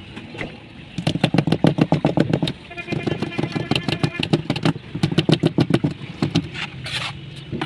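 A metal mould rattles and vibrates as it is shaken.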